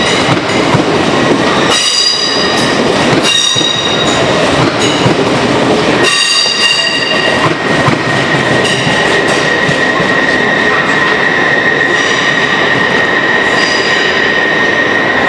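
A passenger train rolls past on the rails under an echoing roof.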